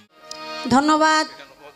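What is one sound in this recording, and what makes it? A violin plays a steady held note.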